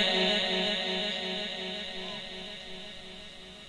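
A man chants in a long, wavering voice through a loudspeaker, and the chant fades away.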